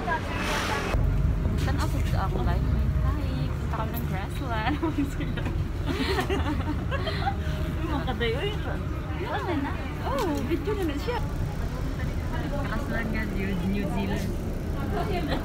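A bus engine hums steadily from inside.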